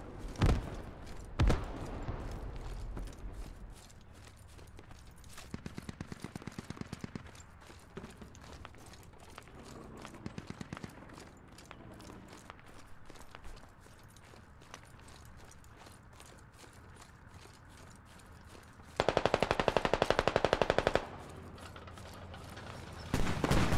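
Footsteps crunch steadily over grass and dirt.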